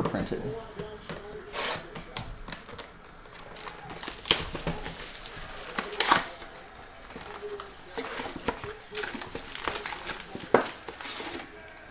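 Cardboard packaging rustles and tears as hands open a box.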